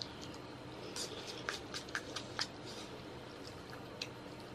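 A plastic spoon scrapes and taps against a paper cup.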